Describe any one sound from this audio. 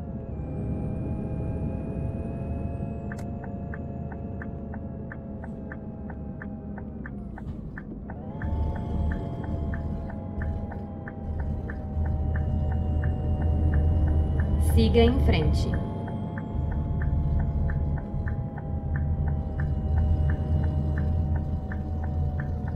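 A bus engine hums steadily, dipping briefly and rising again as it shifts gear.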